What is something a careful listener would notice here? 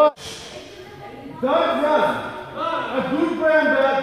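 A group of men chat in an echoing hall.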